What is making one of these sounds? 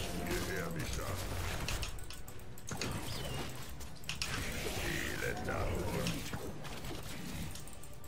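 Spell effects and weapon impacts crackle and clash in a game battle.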